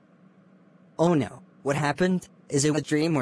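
A young man speaks worriedly through a synthetic voice.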